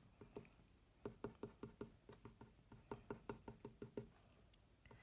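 A pencil scratches on paper in quick, short strokes.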